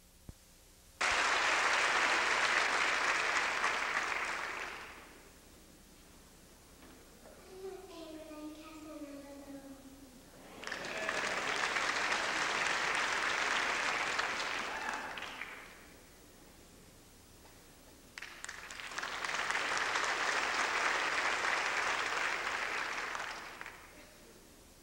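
A crowd claps loudly in a large echoing hall.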